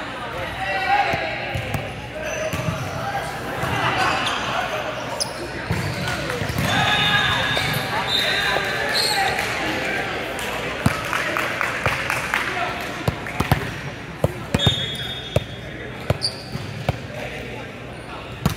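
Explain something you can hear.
A volleyball thumps sharply as it is hit.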